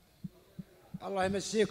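A man speaks loudly into a microphone, heard through a loudspeaker.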